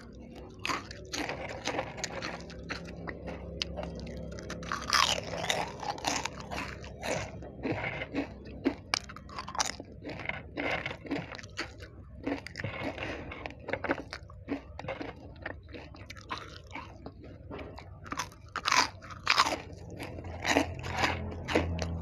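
Crisp chips crackle and snap between fingers.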